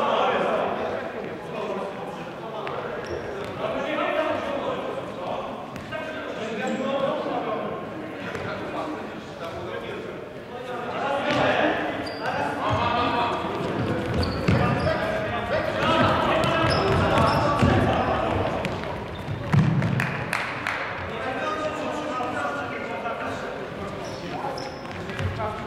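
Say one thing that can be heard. A ball thuds as it is kicked.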